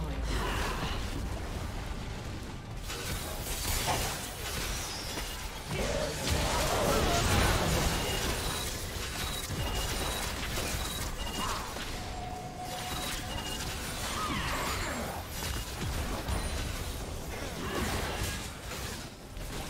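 Video game battle sounds of spells blasting and weapons clashing go on throughout.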